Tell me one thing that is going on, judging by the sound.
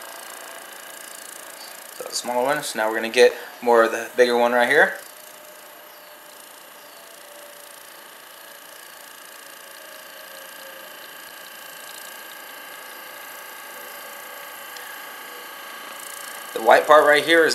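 A massage gun buzzes steadily against a leg.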